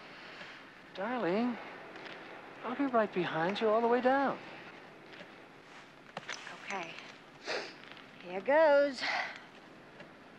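A woman speaks in reply nearby.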